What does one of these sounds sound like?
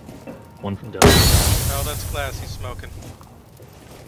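A rifle fires a loud shot that rings out and fades.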